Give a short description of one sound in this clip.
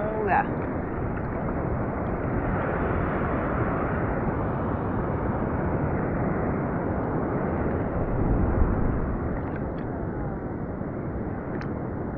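Water laps and sloshes close by.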